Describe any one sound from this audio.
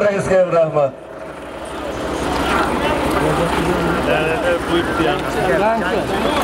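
A crowd of men shouts and calls out outdoors.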